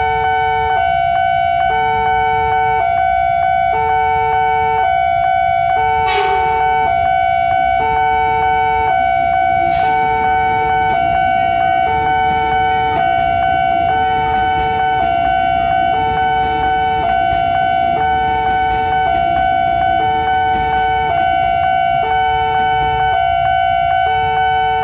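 A railway crossing bell rings loudly in a steady two-tone pattern.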